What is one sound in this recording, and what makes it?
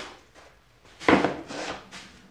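A board is set down with a knock on a wooden bench.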